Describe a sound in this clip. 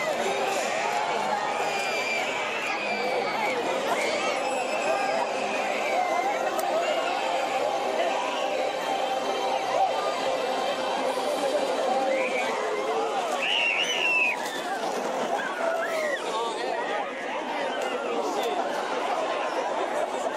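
A large crowd of men and women chatters and calls out nearby, outdoors.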